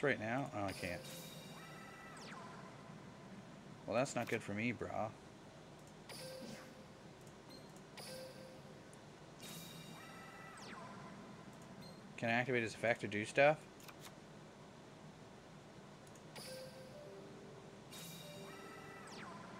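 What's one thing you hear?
Short electronic chimes and whooshes sound as cards are played.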